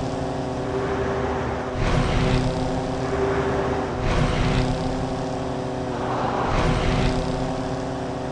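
Trucks rush past with a whoosh.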